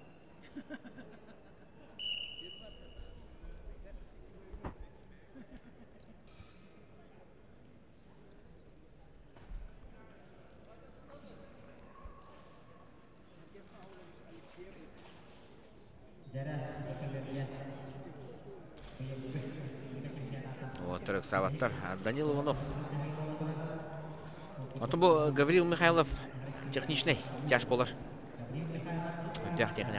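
Spectators murmur faintly in a large echoing hall.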